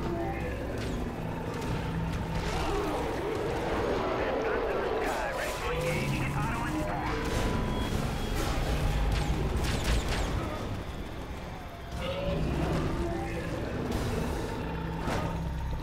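Heavy thuds land as bodies are struck and thrown.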